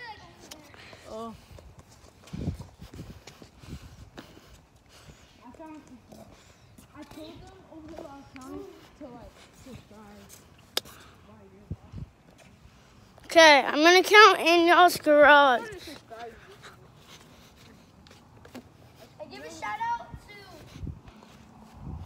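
Boys talk casually nearby.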